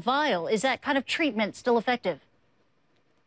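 A woman speaks clearly over a microphone.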